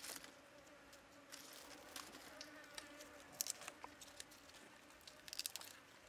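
Dry garlic skin crackles as fingers peel it.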